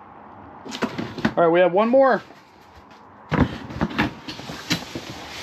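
Cardboard boxes scrape and rustle as they are handled close by.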